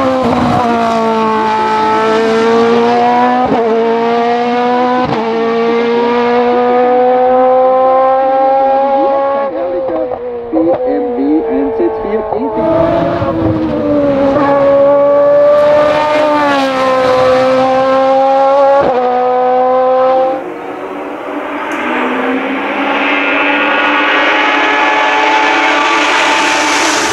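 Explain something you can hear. A race car engine roars loudly at high revs, rising in pitch and shifting gears.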